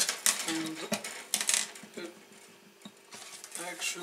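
A loose guitar string rattles and buzzes softly.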